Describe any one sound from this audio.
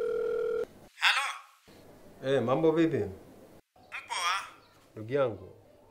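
A man speaks calmly into a phone up close.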